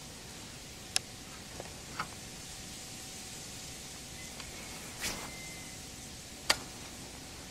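A fishing reel clicks.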